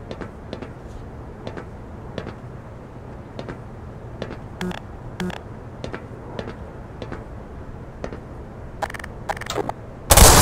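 Footsteps clank steadily on a metal grating.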